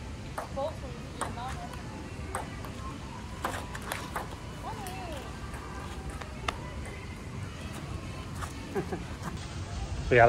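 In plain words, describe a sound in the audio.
A ping pong ball clicks back and forth off paddles and a table.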